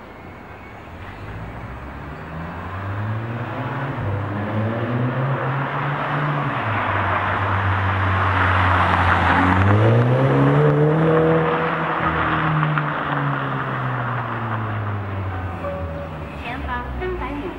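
A car engine revs hard, rising and falling in pitch as the car speeds close by and then fades away.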